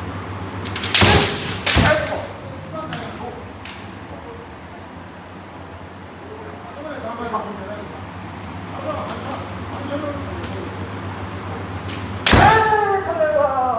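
Bamboo swords clack sharply together in an echoing hall.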